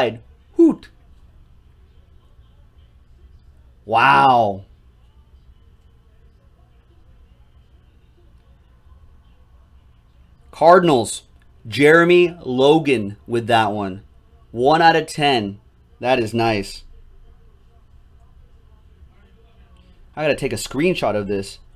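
A man speaks with animation into a nearby microphone, in short bursts.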